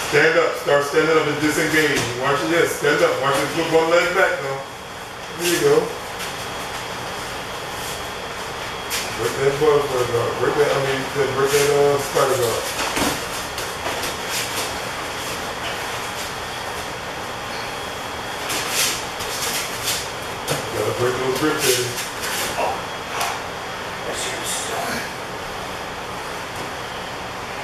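Bodies and feet shuffle and thump on a padded mat.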